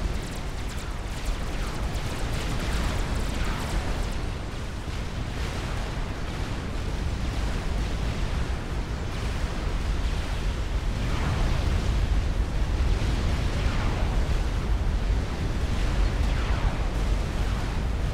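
Laser weapons zap and fire rapidly.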